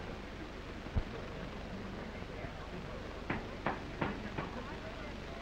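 Footsteps walk slowly across a floor.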